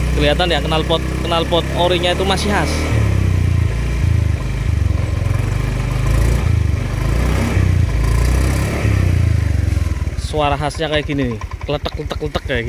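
A scooter engine idles close by with a low, throbbing rumble.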